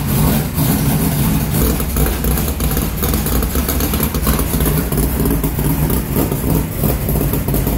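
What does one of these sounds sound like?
A race car engine idles loudly with a deep, rough rumble.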